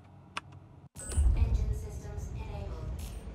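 A spacecraft engine starts up with a low rumble.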